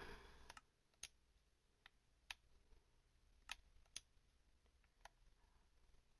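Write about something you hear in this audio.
Soft game menu clicks tick now and then.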